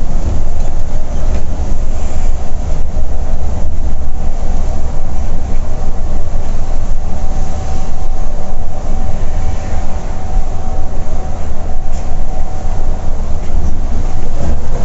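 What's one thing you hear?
A diesel coach engine drones at highway speed, heard from inside the cabin.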